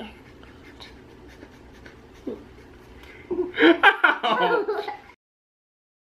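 A small child laughs close by.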